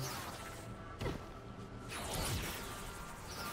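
A burst of energy explodes with a crackling blast.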